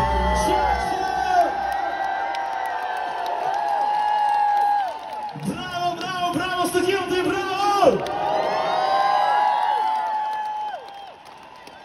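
Pop music plays loudly over a large outdoor sound system.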